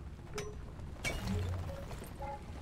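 Rock cracks and shatters into tumbling chunks.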